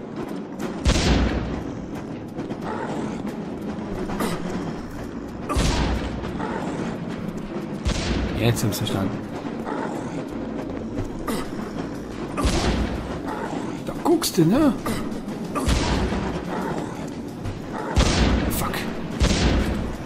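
Loud game explosions boom and rumble.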